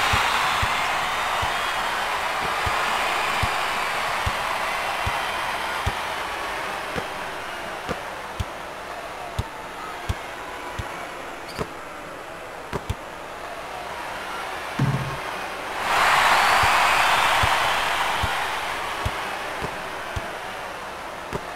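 A crowd murmurs and roars in a large echoing arena, swelling into a loud cheer.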